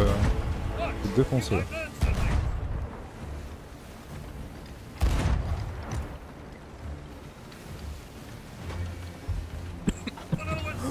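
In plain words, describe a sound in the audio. Rough sea waves wash and roll.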